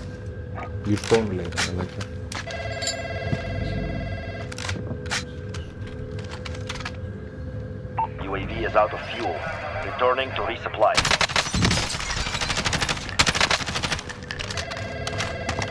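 A rifle clicks and rattles as it is handled.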